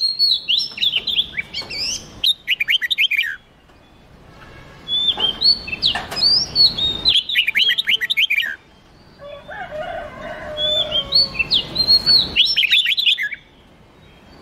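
Songbirds sing loud, rapid whistling phrases close by.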